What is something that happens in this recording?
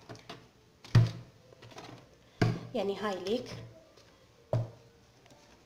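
A plastic basket knocks against a hard surface.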